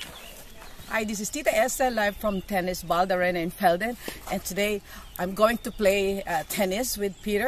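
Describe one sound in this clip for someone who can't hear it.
A woman speaks cheerfully and close up.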